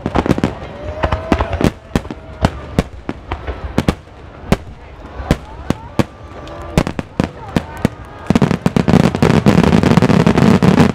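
Fireworks boom and bang loudly in quick succession.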